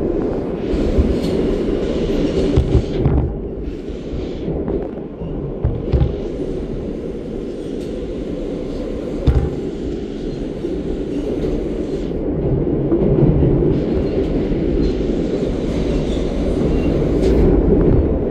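Train wheels clatter and knock over rail joints.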